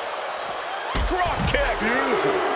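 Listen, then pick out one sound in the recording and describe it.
A body slams hard onto the floor.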